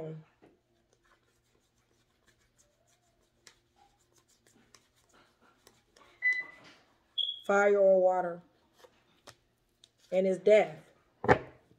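Cards shuffle and slap softly.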